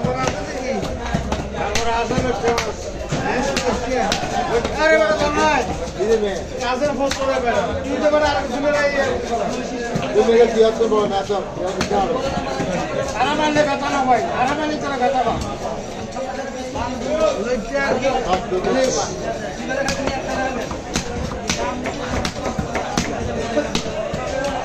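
A cleaver chops sharply against a wooden block.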